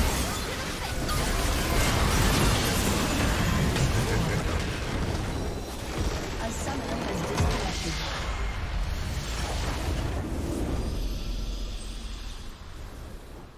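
Game battle effects crash and boom in a dense, noisy clash.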